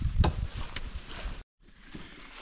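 Boots knock and thud on wooden logs.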